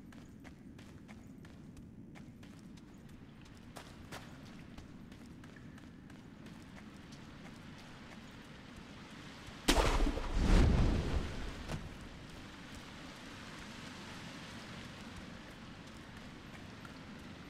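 Footsteps run over wet ground.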